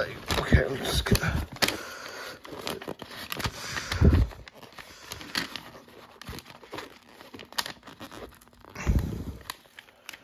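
A sticker sheet crinkles and rustles as stickers peel off.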